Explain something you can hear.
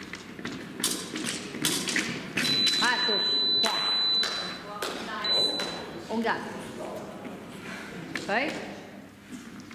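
Épée fencers' feet stamp and shuffle on a metal fencing strip.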